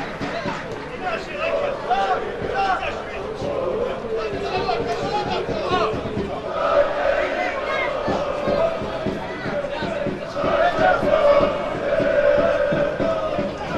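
A football is kicked with dull thumps on a grass pitch.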